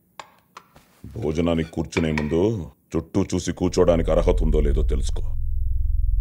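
A man speaks in a low, calm voice.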